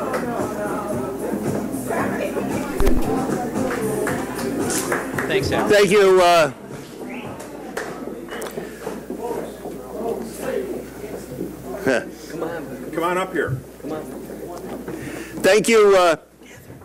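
A man speaks with animation into a microphone over a loudspeaker, in a large echoing hall.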